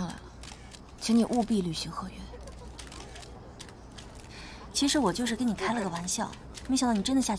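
A second young woman speaks sweetly and close by.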